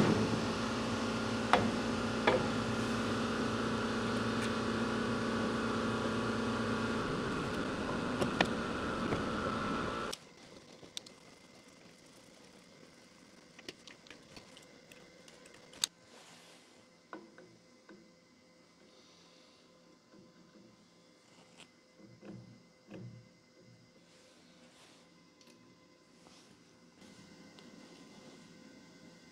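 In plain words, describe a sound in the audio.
Metal parts click and clink.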